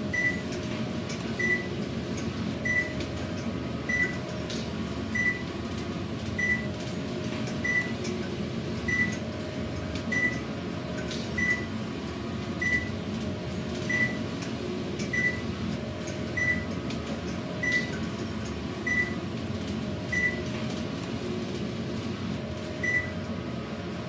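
An elevator chime beeps briefly at each passing floor, at a steady pace.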